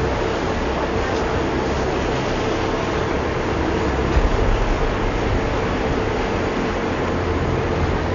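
Water churns and splashes behind a moving boat.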